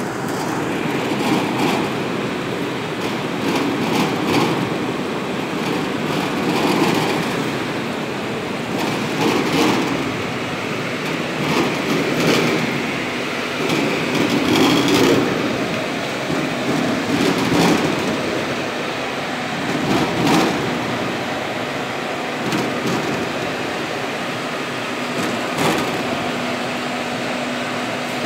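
Tomatoes knock and tumble against each other.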